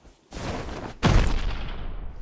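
A heavy thud sounds as a figure lands.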